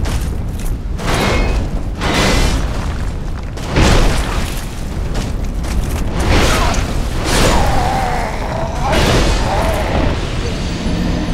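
Heavy metal weapons clash and strike, ringing loudly.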